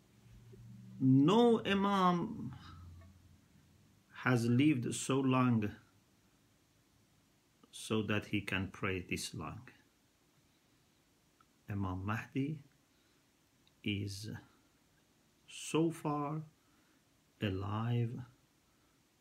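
A middle-aged man speaks calmly and slowly in short phrases, close to the microphone.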